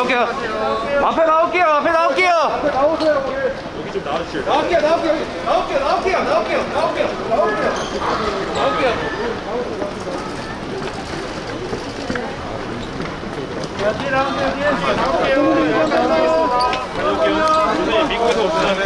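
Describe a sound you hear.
A busy crowd chatters in a large echoing hall.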